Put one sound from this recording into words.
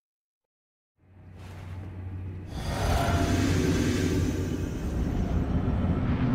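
A deep magical whoosh swells and roars as a figure passes through a glowing fog wall.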